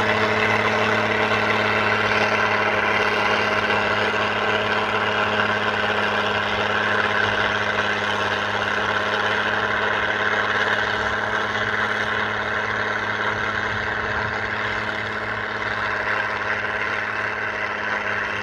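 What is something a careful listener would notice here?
A harrow rattles and scrapes through the soil.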